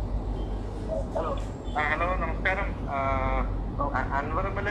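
A middle-aged man speaks calmly into microphones, close by.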